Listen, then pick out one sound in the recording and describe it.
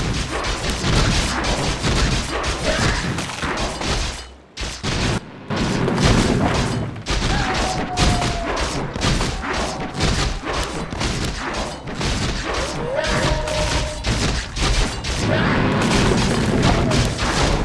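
Weapons clash and spells burst in a game battle.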